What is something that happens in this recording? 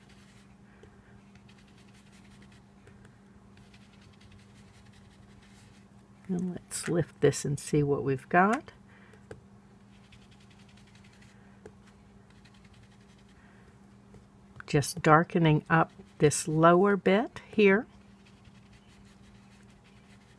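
A foam dauber softly dabs ink onto paper.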